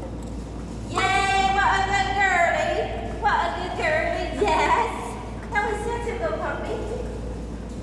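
A woman praises a dog in a high, animated voice.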